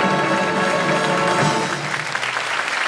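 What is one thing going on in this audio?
A brass band plays a loud sustained final chord in a large hall.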